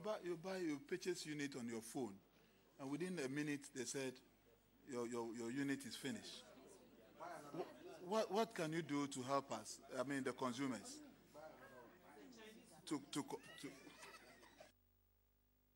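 A man speaks steadily into a microphone, in short bursts with pauses.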